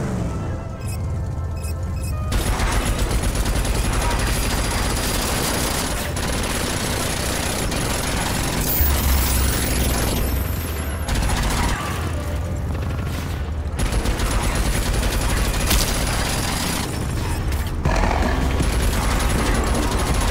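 A buggy engine roars and rumbles steadily.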